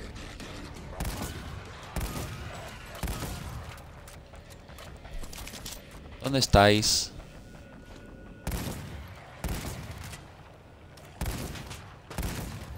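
Single gunshots ring out at intervals, each followed by a short echo.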